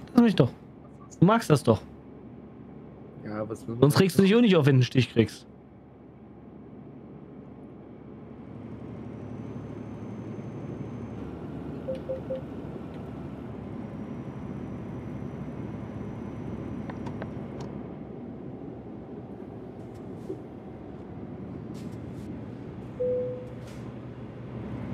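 A truck engine hums steadily as it drives on a highway.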